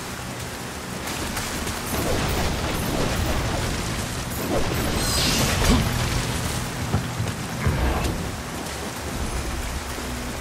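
Footsteps run across soft ground.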